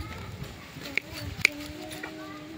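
Pruning shears snip shut with a sharp click.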